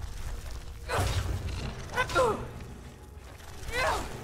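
A giant spider hisses and screeches close by.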